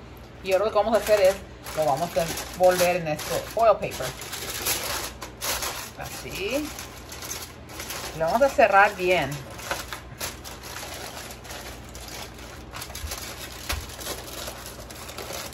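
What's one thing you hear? Aluminium foil crinkles and rustles as it is folded.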